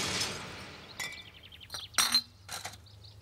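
Glass milk bottles clink together.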